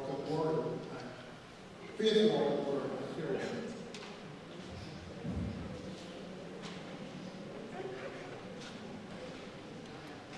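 A crowd of adults murmurs and chatters quietly.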